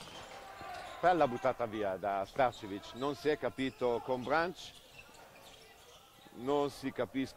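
Sports shoes squeak sharply on a hard court.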